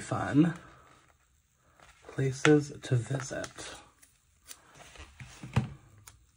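Paper rustles and crinkles softly as stickers are peeled off a sheet.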